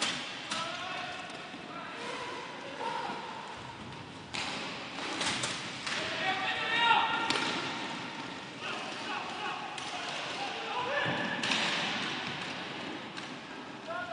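Inline skate wheels rumble and scrape on a hard floor.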